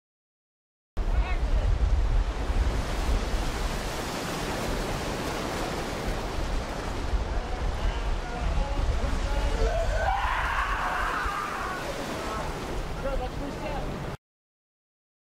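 Waves wash loudly over a beach.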